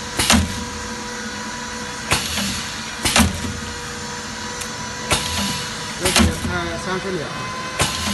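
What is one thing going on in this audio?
A press machine thumps down in sharp repeated strikes.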